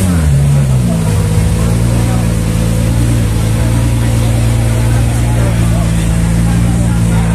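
A car engine idles nearby with a low, steady rumble.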